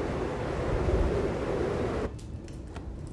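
Wind blows hard outdoors in a snowstorm.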